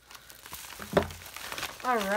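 A padded mailer lands on a table with a soft thud.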